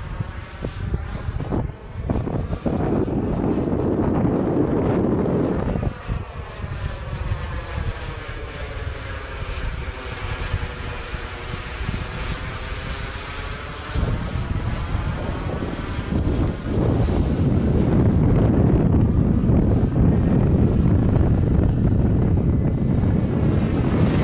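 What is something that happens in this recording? A jet aircraft roars loudly overhead, its sound swelling and sweeping as it passes.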